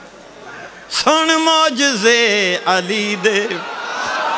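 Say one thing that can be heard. An elderly man chants loudly into a microphone.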